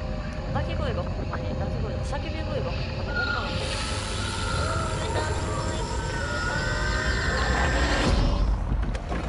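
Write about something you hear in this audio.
An old television hisses with static.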